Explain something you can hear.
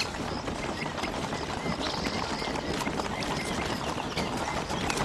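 A horse's hooves clop slowly on a dirt track.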